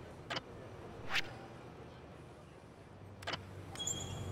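A short game menu click sounds.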